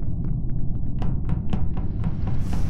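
Quick light footsteps patter.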